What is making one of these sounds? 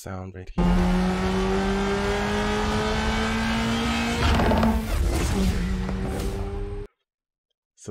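A car engine roars loudly as it accelerates.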